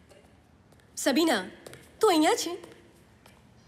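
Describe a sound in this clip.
A young woman calls out loudly twice.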